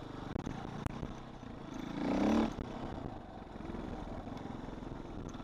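A dirt bike engine buzzes steadily up close.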